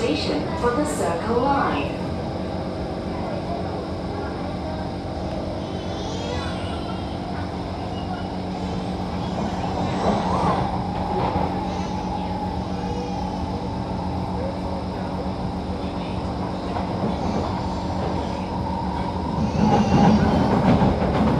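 A train rumbles and hums steadily along its tracks.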